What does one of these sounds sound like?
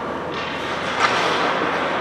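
A hockey stick strikes a puck with a sharp crack.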